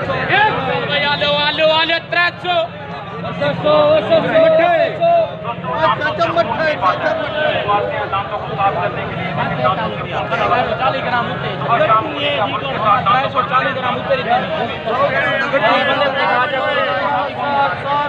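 A busy outdoor market crowd chatters all around.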